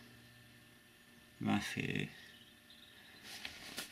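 A thin paper page rustles as it turns.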